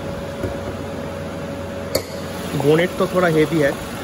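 A car bonnet is lifted open with a soft clunk.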